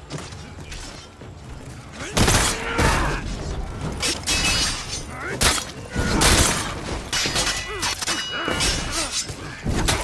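A crowd of soldiers shouts and yells in the fray.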